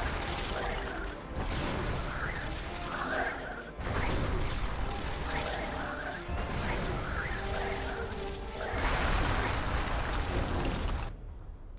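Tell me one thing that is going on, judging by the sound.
Guns fire in rapid bursts during a battle.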